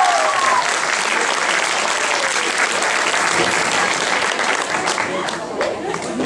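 A crowd of children and adults cheers and applauds loudly.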